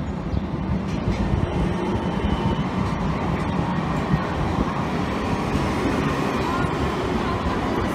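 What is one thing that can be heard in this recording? A tram rumbles past close by, growing louder.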